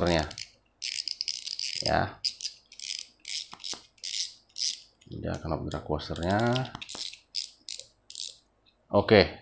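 A fishing reel clicks and ratchets as its spool is turned by hand.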